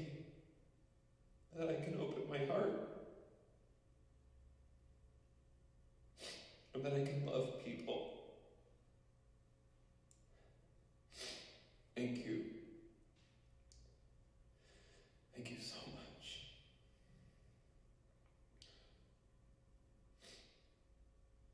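A young man speaks calmly in short phrases, heard over a loudspeaker.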